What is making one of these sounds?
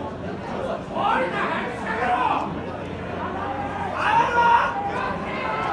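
Men in a crowd shout out loudly in short bursts.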